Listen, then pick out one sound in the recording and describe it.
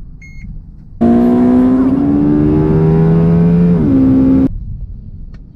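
A V8 car engine accelerates hard, rising in pitch.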